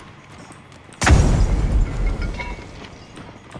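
A rifle fires a loud shot that echoes.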